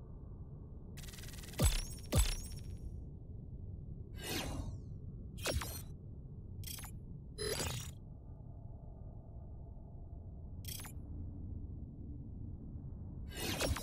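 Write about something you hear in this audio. Bright game chimes ring out one after another.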